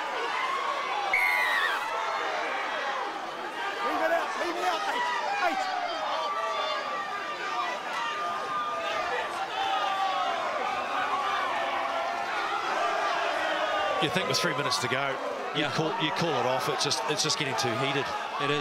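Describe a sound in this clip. A large crowd shouts and jeers outdoors.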